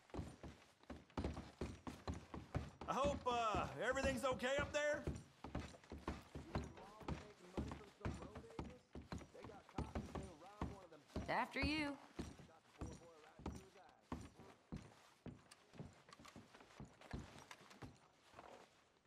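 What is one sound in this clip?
Footsteps thud on wooden stairs and floorboards.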